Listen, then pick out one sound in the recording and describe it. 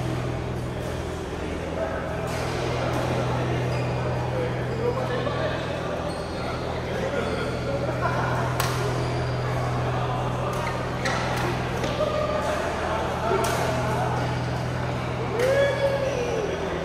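Men call out and chatter in a large echoing hall.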